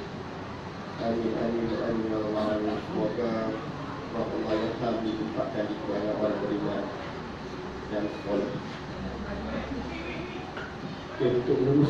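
A man speaks over a loudspeaker to the crowd.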